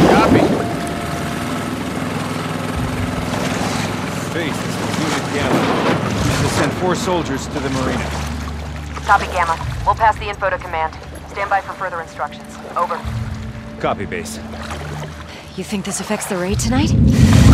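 Water sloshes and ripples as a swimmer moves along slowly.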